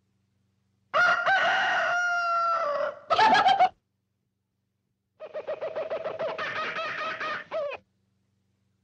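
A man speaks in a squawky cartoon voice, loudly and with animation.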